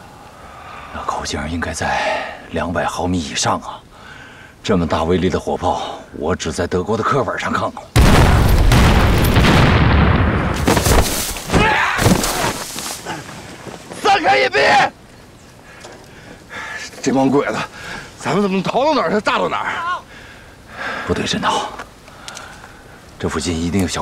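A man speaks urgently and tensely, close by.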